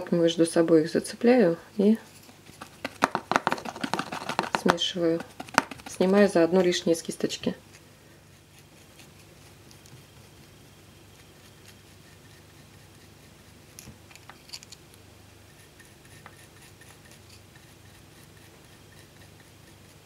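A stiff brush scrapes and dabs at thick paint.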